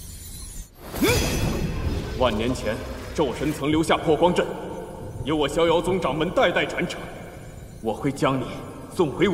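A man speaks gravely and with force.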